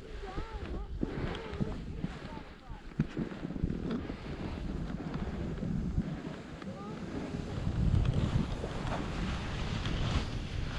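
Wind rushes and buffets loudly past close by.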